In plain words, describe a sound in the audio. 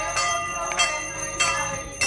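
A woman claps her hands in a steady rhythm.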